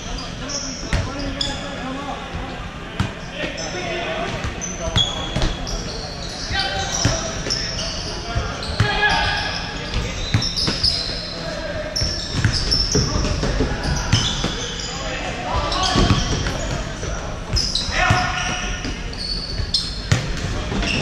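A ball thumps as players kick it.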